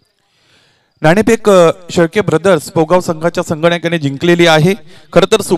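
A man talks into a microphone calmly, heard through loudspeakers.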